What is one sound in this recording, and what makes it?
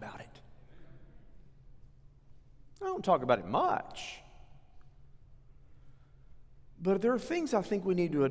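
A middle-aged man speaks calmly and earnestly through a microphone.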